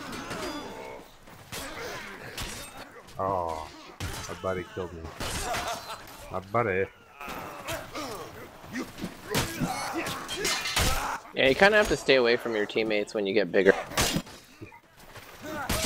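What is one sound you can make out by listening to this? Weapons swing and strike with sharp thuds and clanks.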